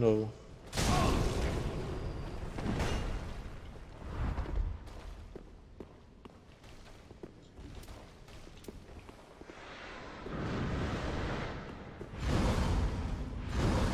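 Heavy blows land with deep booms.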